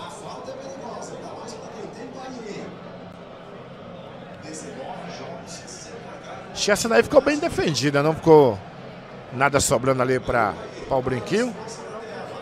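A crowd of men murmurs and chatters in the background.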